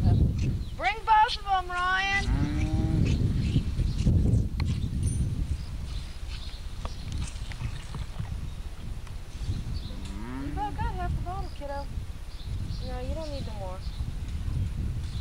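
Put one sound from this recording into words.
A calf bawls in high, wavering cries.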